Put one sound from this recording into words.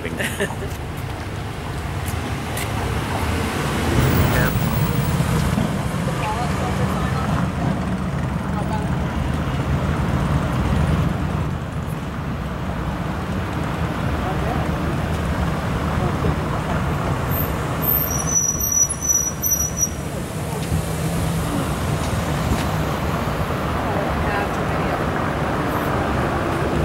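Outdoors, wind rumbles steadily against the microphone.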